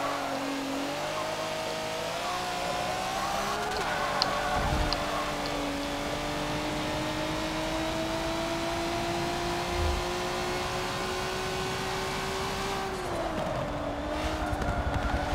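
A racing car engine roars steadily, climbing slowly in pitch and then dropping briefly as it changes gear.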